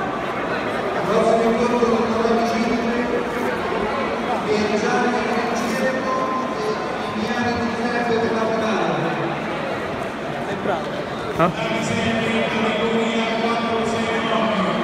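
A man shouts instructions loudly nearby.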